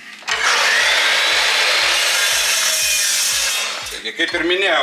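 A power saw whines loudly as it cuts through metal.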